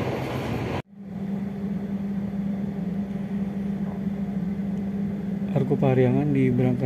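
A train engine hums steadily nearby.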